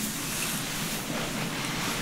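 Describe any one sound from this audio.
Fingers rustle close through hair.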